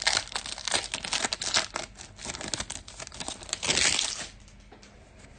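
Foil wrapping crinkles and tears as a card pack is ripped open.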